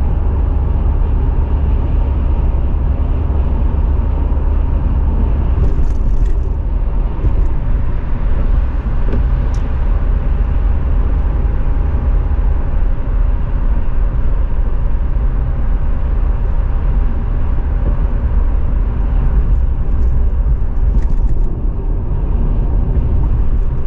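A car's engine hums steadily from inside.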